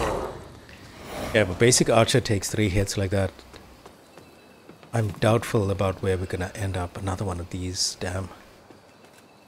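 Quick footsteps run over stone and wooden planks.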